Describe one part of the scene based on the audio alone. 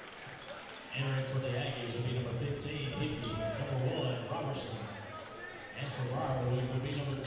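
A crowd in an echoing gym cheers loudly.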